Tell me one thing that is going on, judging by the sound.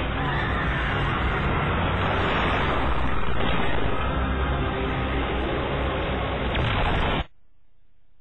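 Fires roar and crackle.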